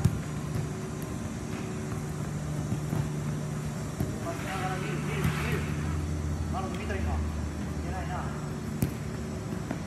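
A futsal ball thuds as it is kicked on artificial turf.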